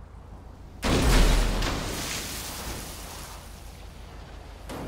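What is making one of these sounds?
Water churns and washes around a sinking car.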